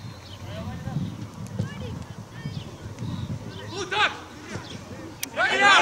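Young men shout to each other across an open pitch outdoors.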